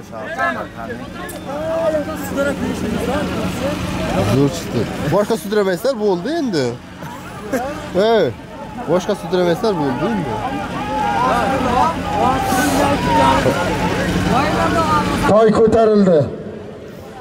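A crowd of men shouts and calls out outdoors.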